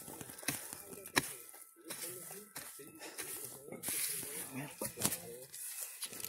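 A tool scrapes and digs into soil.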